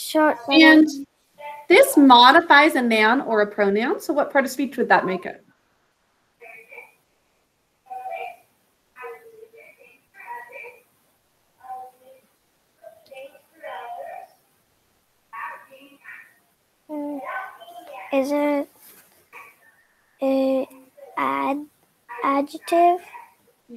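A young girl speaks calmly through an online call.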